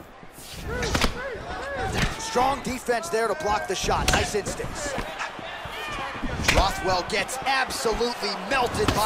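A fighter's kicks land with heavy thuds.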